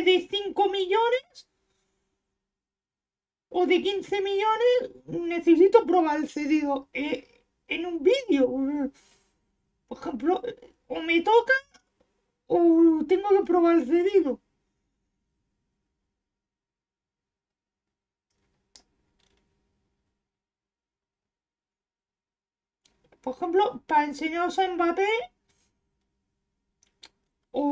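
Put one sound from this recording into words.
A young man talks into a close microphone with animation, in bursts with pauses.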